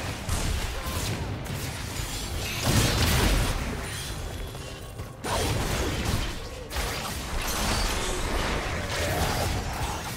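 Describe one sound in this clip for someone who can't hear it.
Spell effects burst and crackle during a fight.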